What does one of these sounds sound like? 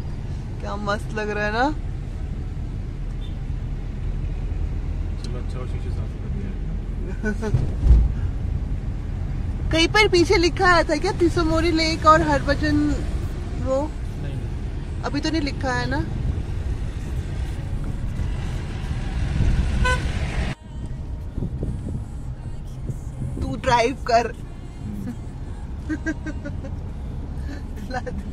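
A car engine hums and tyres rumble steadily on the road.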